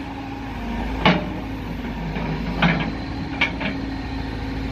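A backhoe bucket clanks against broken asphalt and rubble.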